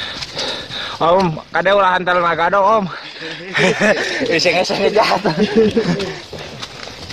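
Men talk loudly nearby outdoors.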